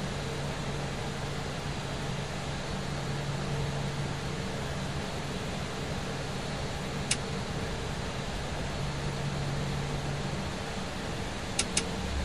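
A jet engine hums steadily at low power.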